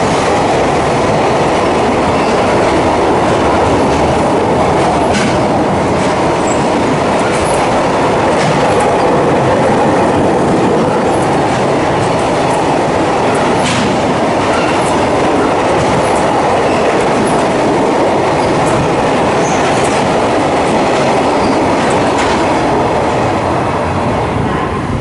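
A long freight train rumbles past close by at speed.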